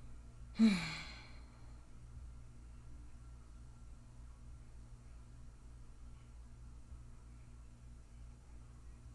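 Cloth rustles softly in someone's hands.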